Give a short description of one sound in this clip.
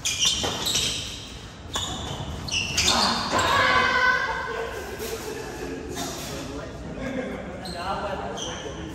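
Sports shoes squeak on a hard indoor court.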